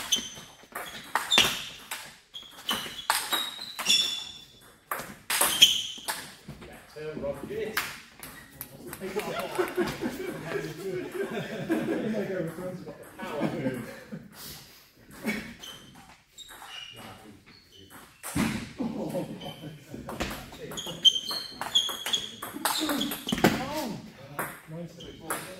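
A ping-pong ball clicks back and forth off paddles and a table in a quick rally.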